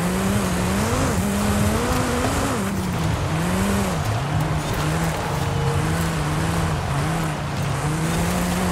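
A sports car engine roars at high speed, its pitch rising and falling with the gears.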